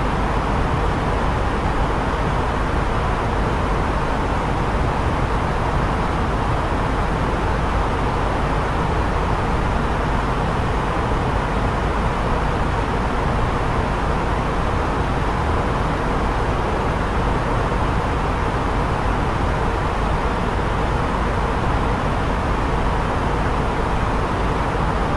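Jet engines and rushing air roar steadily in flight.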